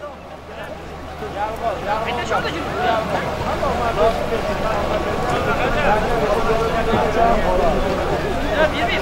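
A crowd of men shout and call out outdoors.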